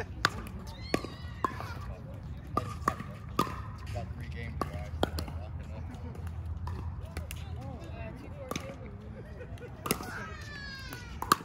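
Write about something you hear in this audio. Pickleball paddles sharply pop against a plastic ball, again and again.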